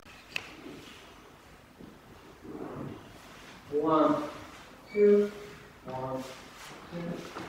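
Dance shoes shuffle and tap on a wooden floor.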